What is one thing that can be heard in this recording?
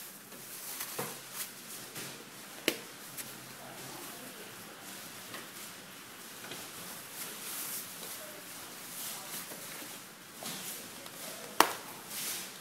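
Plastic parts click and snap into place.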